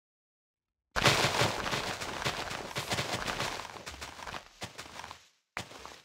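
Leaves rustle as shears snip through them.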